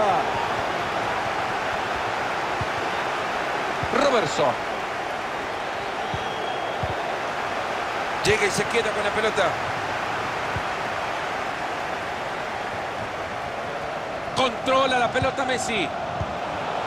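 A large stadium crowd murmurs and hums steadily.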